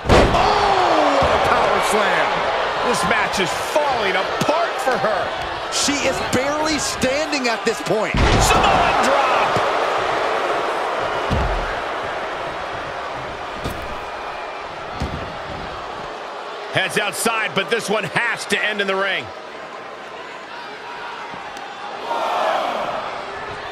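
A crowd roars and cheers in a large arena.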